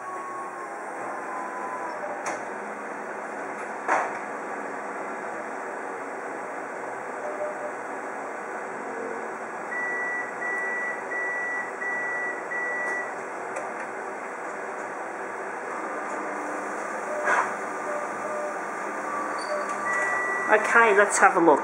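A printer hums steadily.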